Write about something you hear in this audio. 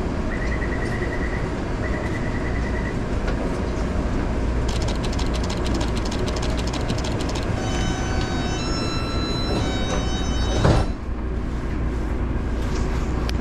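A subway train rumbles steadily.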